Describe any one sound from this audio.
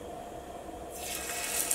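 Oil sizzles in a hot pan as food is laid in.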